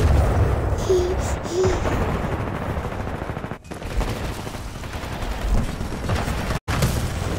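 Gunfire and explosions rumble in a video game battle.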